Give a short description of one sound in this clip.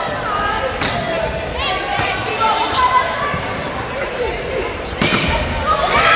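A volleyball is hit with sharp slaps.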